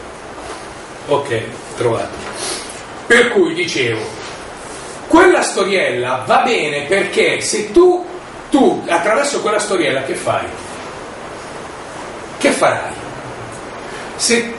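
A middle-aged man speaks with animation nearby.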